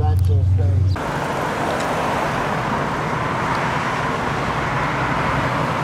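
Cars drive past on a busy road with a steady rush of traffic.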